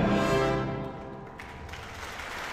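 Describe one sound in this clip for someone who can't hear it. An orchestra plays a sustained final chord that rings out and fades in a large hall.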